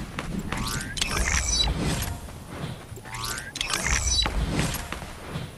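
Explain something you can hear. Soft whooshing and chiming sounds play as menu panels pop up.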